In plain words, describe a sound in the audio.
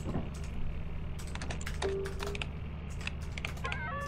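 Keys click on a keyboard in quick taps.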